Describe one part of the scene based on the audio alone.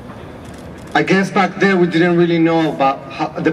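A woman speaks calmly into a microphone outdoors.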